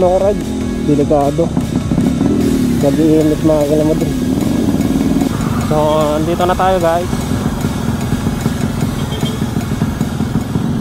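A single-cylinder 125cc motorcycle engine hums as the bike cruises along a street.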